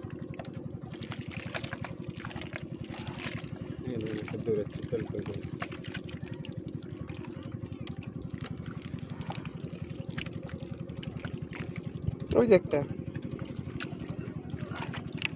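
Hands squelch and slap in thick wet mud.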